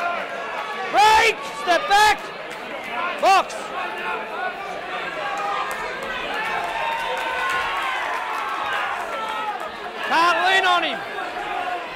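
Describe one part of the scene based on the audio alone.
Spectators shout and cheer loudly in short bursts.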